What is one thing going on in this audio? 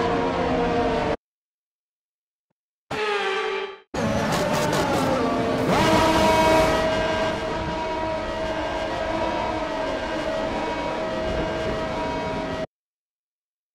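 A racing car engine whines at high revs.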